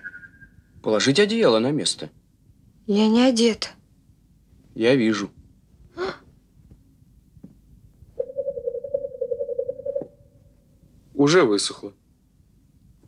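A young man speaks with alarm, close by.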